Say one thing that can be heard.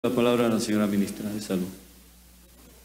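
A man speaks calmly into a microphone.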